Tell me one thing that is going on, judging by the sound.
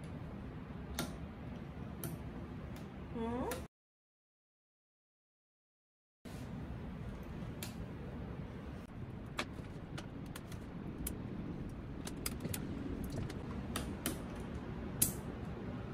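Plastic keycaps click and clack as they are pried off a keyboard.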